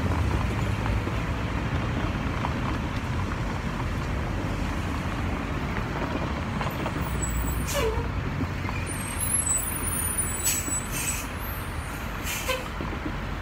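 Traffic rumbles steadily on a nearby street.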